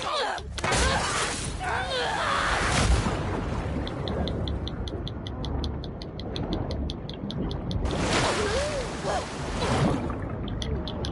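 Water splashes heavily.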